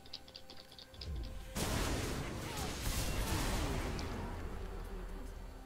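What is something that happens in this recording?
Magic spells whoosh and crackle in a fierce fight.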